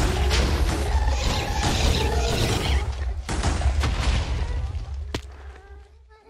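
Blocks of earth and stone crunch as they are dug away.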